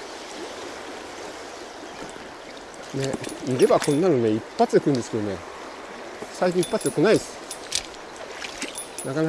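A fishing reel clicks as its handle turns.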